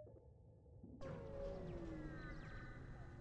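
A spaceship warps away with a sudden rushing whoosh and falling tones.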